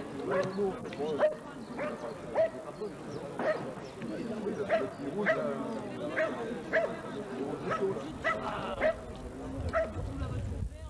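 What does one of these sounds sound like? A dog barks repeatedly and excitedly.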